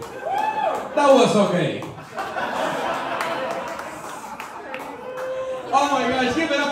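A crowd cheers and shouts in a room.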